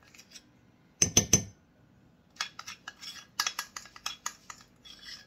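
A spoon clinks against a small bowl.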